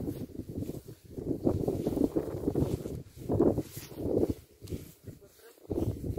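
Footsteps swish through grass close by.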